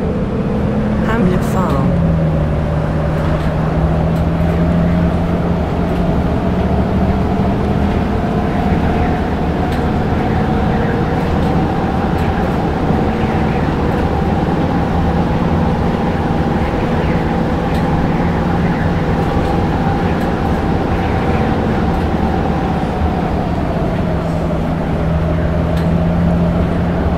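An automatic gearbox whines on a diesel city bus.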